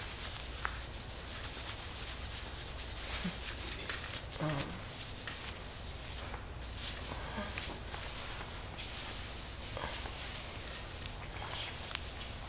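Hands rub and press on cloth with a soft rustle.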